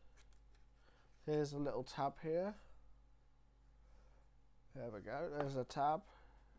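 Hands slide a cardboard tray out of a box with a soft scrape.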